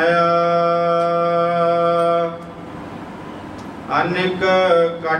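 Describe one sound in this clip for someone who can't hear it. An elderly man sings a slow, drawn-out hymn into a microphone.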